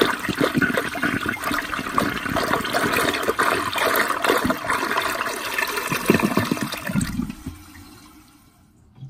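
Water swirls and gurgles down a toilet drain as it flushes.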